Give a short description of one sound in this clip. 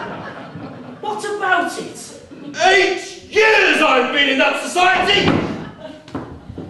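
A second man answers loudly and expressively.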